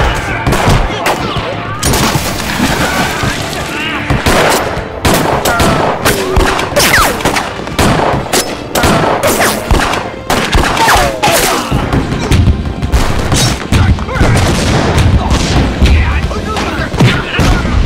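Gunshots crack rapidly.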